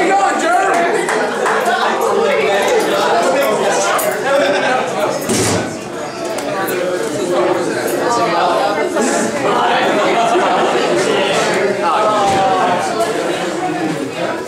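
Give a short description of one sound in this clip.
Drums and cymbals crash and thump.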